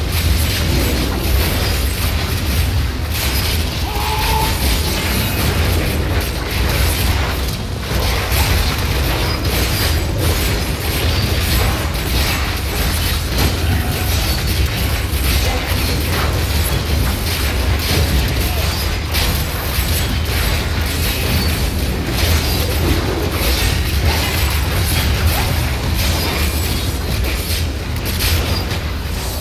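Game weapons strike monsters with repeated hits.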